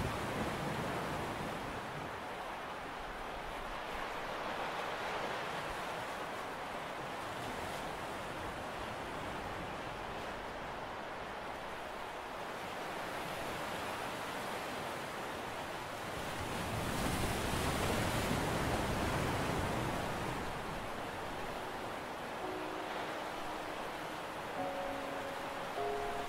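Waves break and rush onto a beach in the distance, swelling and fading.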